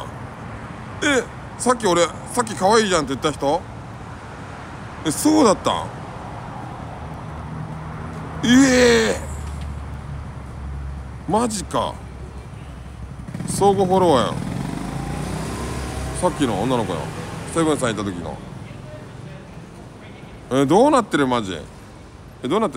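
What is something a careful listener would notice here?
A man speaks close by in a calm, chatty voice.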